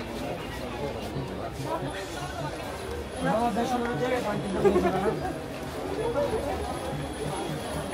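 A crowd of people chatter all around in a busy indoor space.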